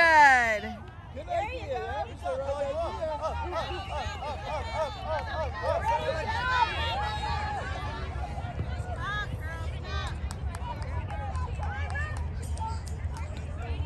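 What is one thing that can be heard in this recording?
Children shout and cheer excitedly outdoors, some distance away.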